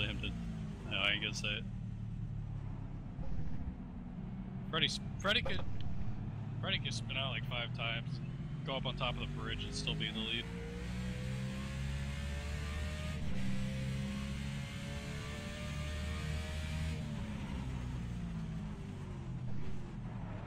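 A race car engine drones loudly and revs up and down through gear changes.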